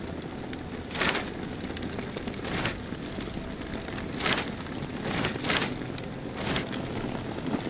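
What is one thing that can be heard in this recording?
Paper cards rustle and flap as they are handled.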